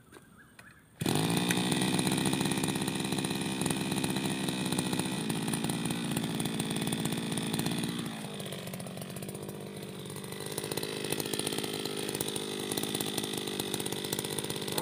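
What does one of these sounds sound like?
A small two-stroke engine sputters to life and runs with a steady loud buzz.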